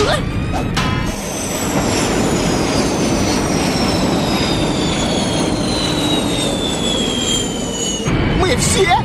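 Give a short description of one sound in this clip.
A craft roars with a falling whine as it plunges through the air.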